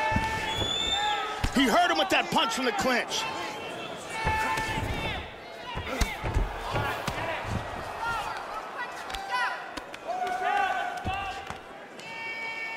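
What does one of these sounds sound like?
Heavy punches thud against a body in quick bursts.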